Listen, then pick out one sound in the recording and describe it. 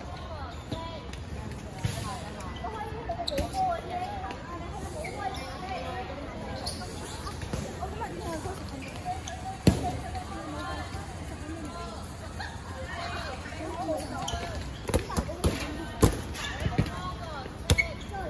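Young women chatter and call out nearby.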